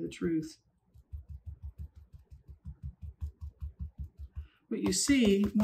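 A stiff brush taps rapidly against paper on a table.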